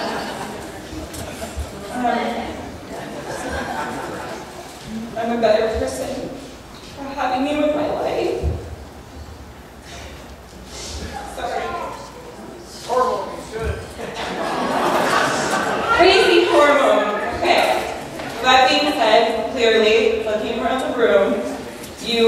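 A young woman speaks into a microphone through loudspeakers in a large echoing hall.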